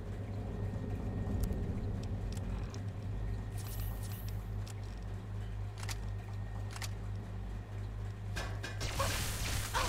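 Soft menu clicks tick.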